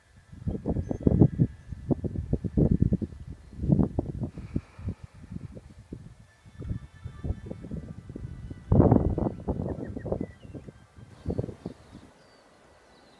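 Wind gusts roar against the microphone outdoors.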